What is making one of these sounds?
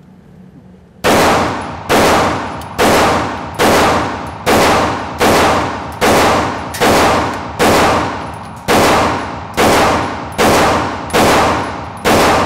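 A pistol fires shot after shot, ringing through a large echoing hall.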